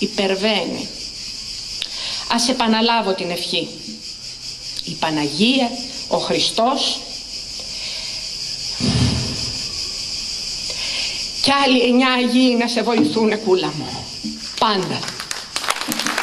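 An elderly woman reads out calmly through a microphone.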